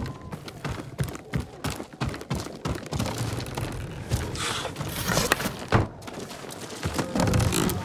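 Footsteps tread on wooden boards.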